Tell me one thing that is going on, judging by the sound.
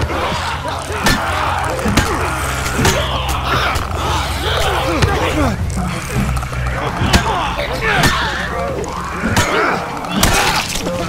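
Heavy blows thud against a body.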